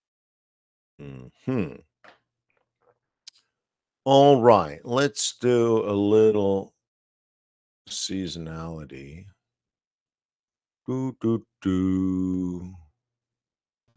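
A middle-aged man speaks with animation into a close microphone over an online call.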